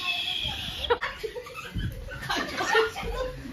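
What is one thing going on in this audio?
A young woman shrieks with laughter close by.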